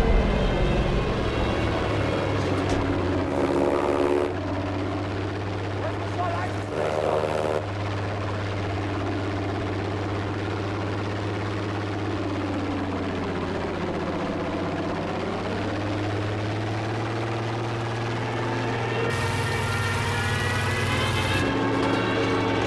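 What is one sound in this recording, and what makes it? Wind rushes past the plane, rising and falling.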